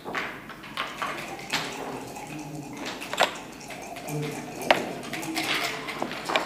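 Backgammon checkers click and clack against a wooden board.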